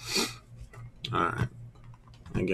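A card pack slides across a table.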